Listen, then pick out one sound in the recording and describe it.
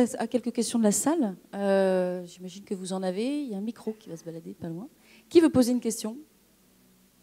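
A young woman speaks with animation into a microphone, heard over loudspeakers in a large hall.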